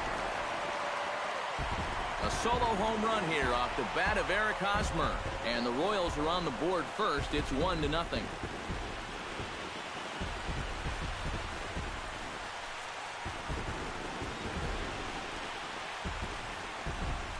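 A large crowd cheers loudly in a stadium.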